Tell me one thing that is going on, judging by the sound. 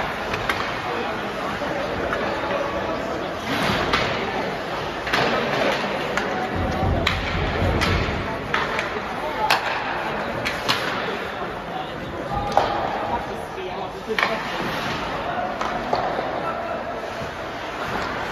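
Skate blades scrape and hiss across the ice.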